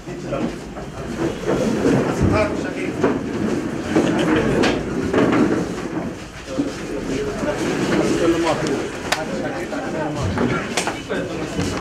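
Several men talk over one another in a room.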